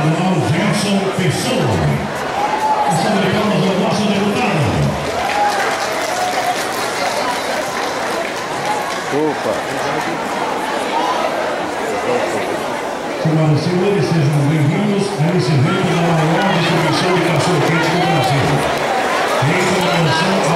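A man talks loudly close by.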